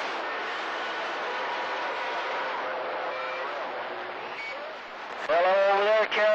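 Radio static hisses and crackles through a loudspeaker.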